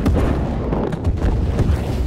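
An explosion booms with a deep rumble.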